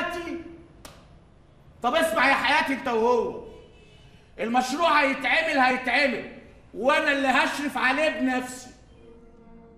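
A middle-aged man speaks firmly nearby.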